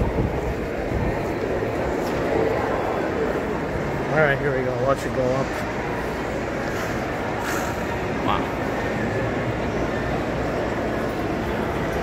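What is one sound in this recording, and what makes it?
A steady murmur of distant voices echoes through a large indoor hall.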